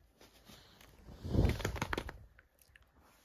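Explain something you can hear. A small dog pants quickly and heavily.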